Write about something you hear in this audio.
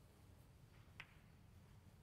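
A snooker ball knocks against another ball with a click.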